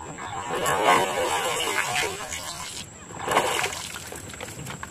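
A fish splashes and thrashes in water close by.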